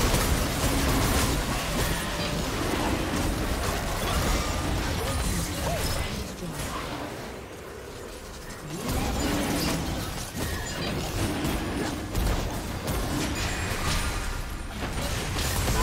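Game spells crackle and burst in a busy fight.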